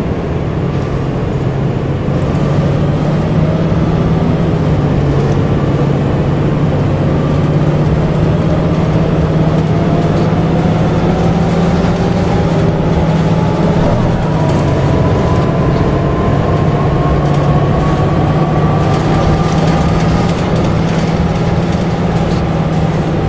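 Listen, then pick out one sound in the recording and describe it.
A diesel city bus engine drones as the bus accelerates.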